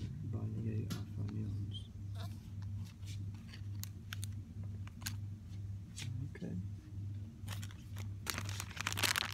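Plastic packaging crinkles and rustles as a hand handles it.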